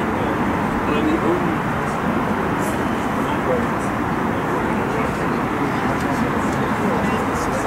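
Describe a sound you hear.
A man talks quietly close by.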